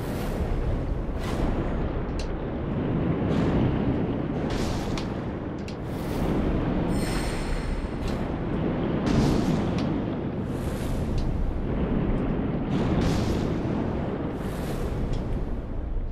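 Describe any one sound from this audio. Water rushes in a steady roar.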